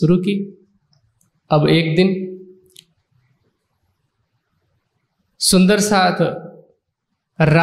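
A man speaks slowly and solemnly into a microphone, in short phrases with long pauses.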